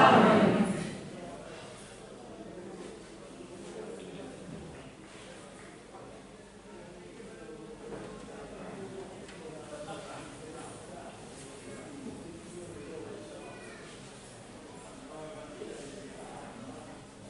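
A man speaks calmly at a distance through a microphone, with echo.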